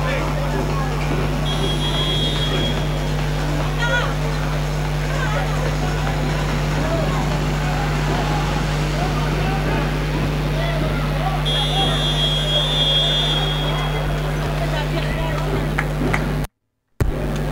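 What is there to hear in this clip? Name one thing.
Men talk and call out together nearby, echoing in a large hall.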